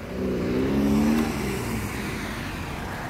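A car engine hums as a car drives past close by.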